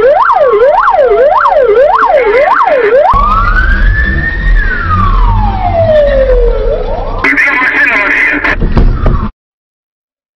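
A police siren wails and yelps loudly close by.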